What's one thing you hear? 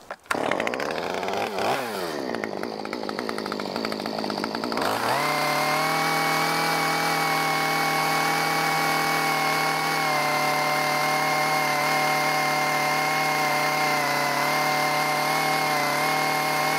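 A chainsaw engine revs up and then runs at a loud, steady roar.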